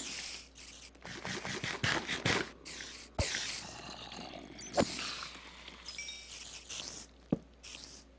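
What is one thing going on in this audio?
Someone munches food with crunchy bites.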